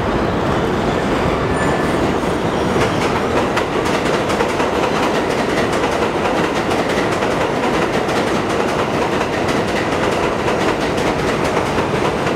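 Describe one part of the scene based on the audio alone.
An elevated train rumbles and rattles loudly along the tracks nearby.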